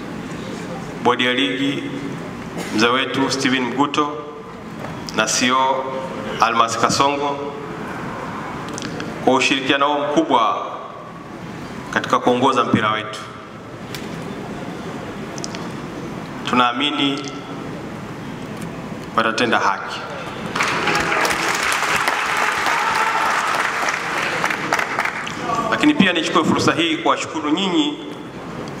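A man speaks calmly into a microphone through a loudspeaker in a large echoing hall.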